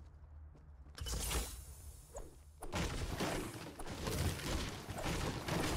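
A pickaxe thuds repeatedly against a wooden wall.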